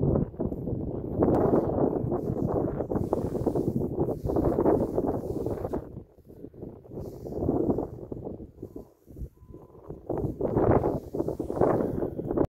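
Wind gusts roar against the microphone outdoors, rising and dropping.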